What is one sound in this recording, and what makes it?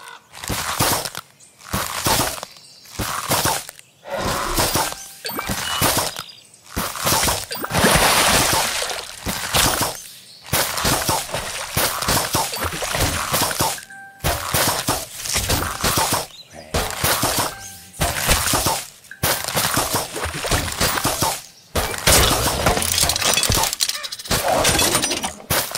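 Cartoon plants fire with quick popping shots.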